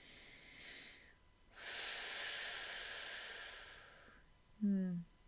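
A woman breathes in and out slowly and deeply.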